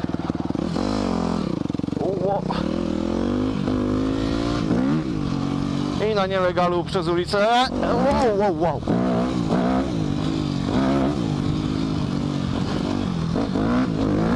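A motorcycle engine revs up and down loudly close by.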